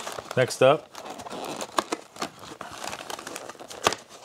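A cardboard box crinkles and clicks as hands open it.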